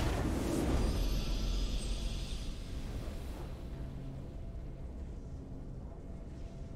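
A short victory tune plays softly and fades.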